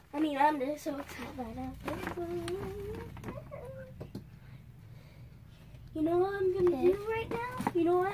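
A paper gift bag rustles.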